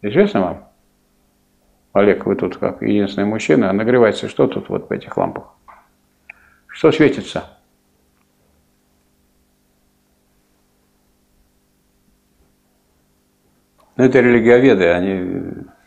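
An elderly man speaks calmly in a quiet room.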